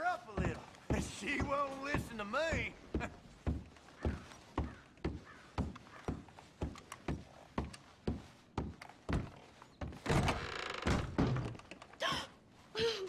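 Footsteps thud steadily on creaking wooden stairs and floorboards.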